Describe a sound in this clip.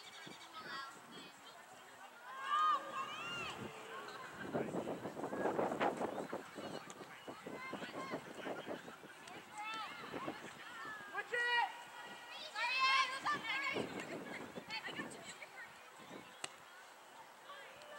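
Young women shout and call out to each other outdoors across an open field.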